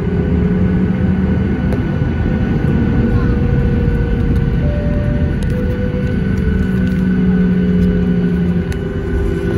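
An aircraft rumbles as it rolls along the runway.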